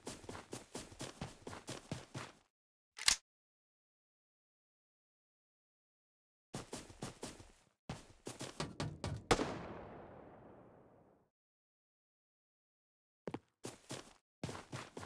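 Quick footsteps thud on the ground.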